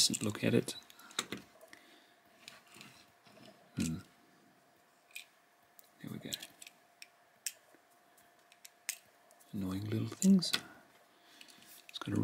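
A small toy car clicks down onto a wooden tabletop.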